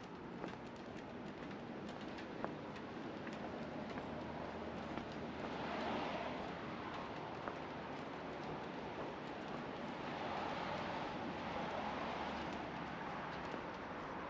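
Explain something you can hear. Footsteps walk steadily over a bridge deck.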